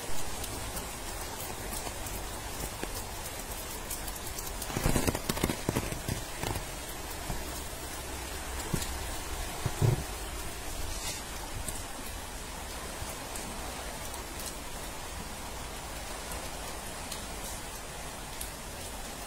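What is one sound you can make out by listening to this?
Rain patters steadily on flood water outdoors.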